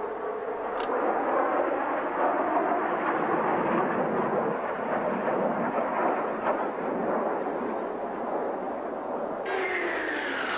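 A jet aircraft roars overhead.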